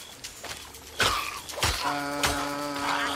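Heavy crunching thuds sound as a shark bites into its prey.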